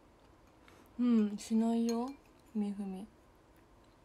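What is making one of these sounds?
A young woman speaks a few soft words close by.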